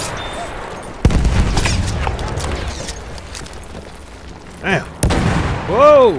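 A gun fires loud single shots.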